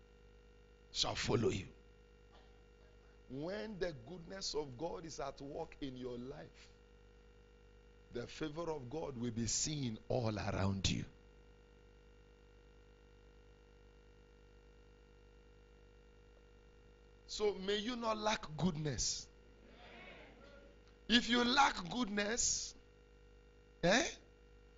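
A man preaches with animation into a microphone, heard through loudspeakers, in bursts with pauses.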